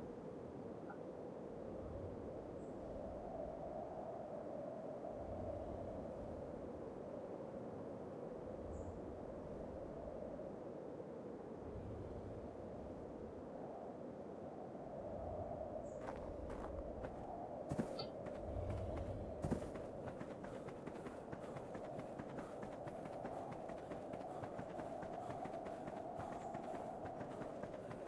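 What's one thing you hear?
Footsteps crunch slowly on snow.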